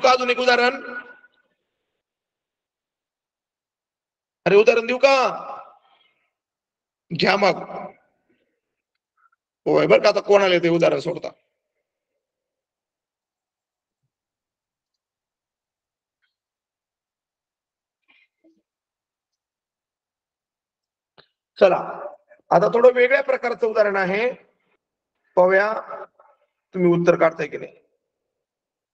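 A man speaks in short phrases over an online call, with pauses between.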